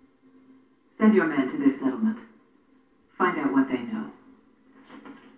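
A woman speaks calmly through a small loudspeaker.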